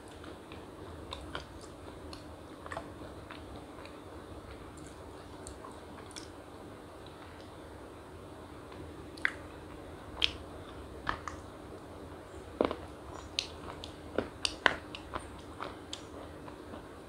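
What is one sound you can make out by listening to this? A young woman bites and crunches a crispy wafer close by.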